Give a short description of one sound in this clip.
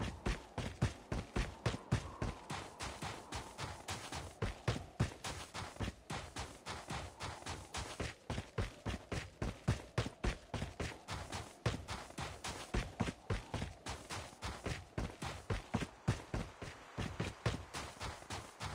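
Footsteps pound quickly and steadily on grass and dirt.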